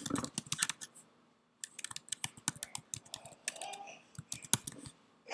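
Keys click quickly on a computer keyboard.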